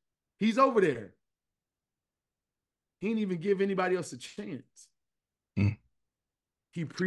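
A man talks with animation over an online call.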